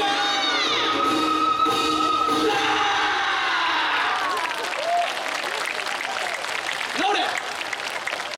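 Music plays loudly over outdoor loudspeakers.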